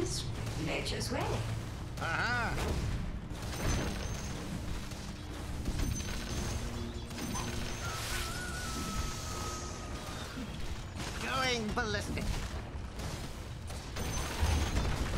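Weapons clash and strike in a fantasy game battle.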